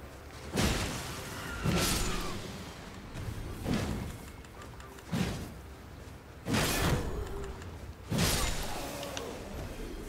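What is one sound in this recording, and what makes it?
Heavy sword blows land with loud crashing impacts.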